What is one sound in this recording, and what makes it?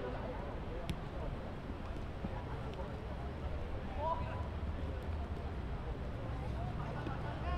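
Young players shout across an outdoor pitch.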